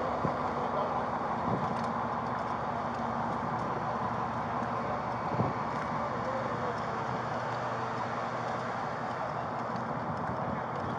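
A car drives slowly toward the listener with its engine running.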